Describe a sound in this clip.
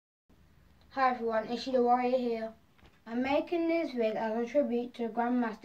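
A young boy speaks clearly and calmly close to a microphone.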